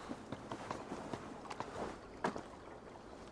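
Hands and feet knock on a wooden ladder while climbing.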